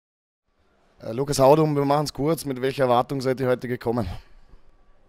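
A young man speaks calmly into a microphone at close range.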